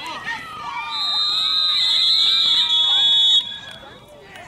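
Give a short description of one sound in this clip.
A referee's whistle blows long and shrill.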